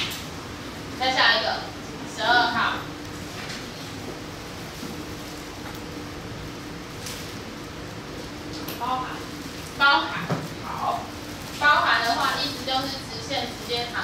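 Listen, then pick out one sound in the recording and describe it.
A woman speaks in short bursts.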